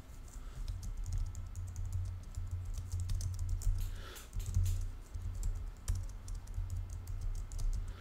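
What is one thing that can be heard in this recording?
Keys on a keyboard click quickly as someone types.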